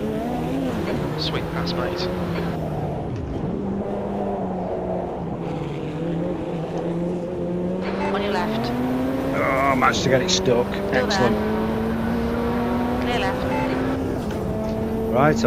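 A racing car engine roars steadily, its pitch rising and falling with gear changes.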